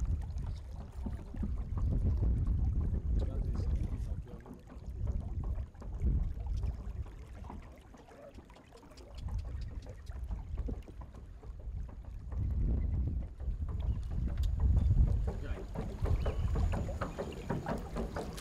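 Water laps against the bow of a wooden boat.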